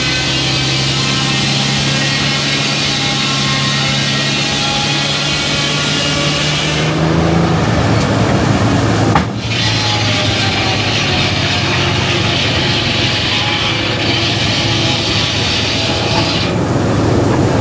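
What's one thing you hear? A big circular saw blade whines as it cuts through a log.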